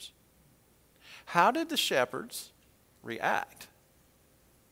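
An older man speaks calmly into a microphone in short phrases.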